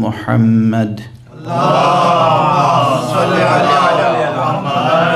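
An elderly man recites in a slow, drawn-out chanting voice through a microphone, with echo.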